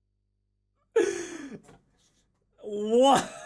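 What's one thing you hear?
A young person speaks with animation close to a microphone.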